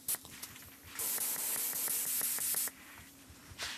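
A paint spray gun hisses in short bursts.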